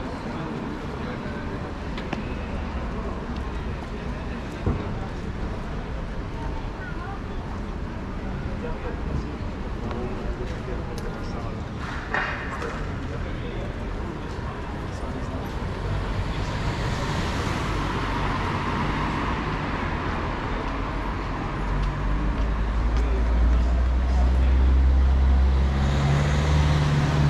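Footsteps tap on pavement nearby.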